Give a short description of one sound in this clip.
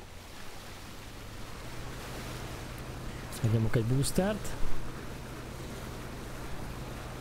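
A boat engine hums steadily.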